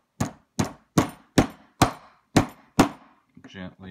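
A hammer strikes metal in sharp, ringing blows.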